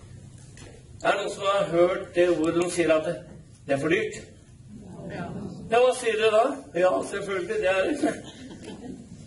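A man speaks calmly through a microphone and loudspeakers in a large echoing hall.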